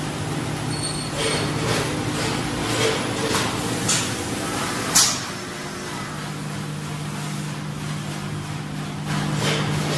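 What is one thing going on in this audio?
A packaging machine hums steadily.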